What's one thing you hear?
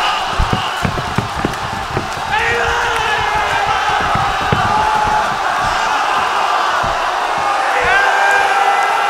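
A large crowd murmurs and chants outdoors.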